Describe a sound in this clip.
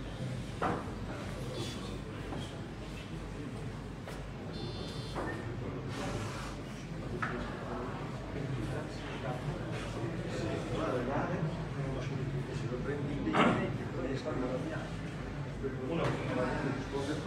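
Several men talk quietly nearby.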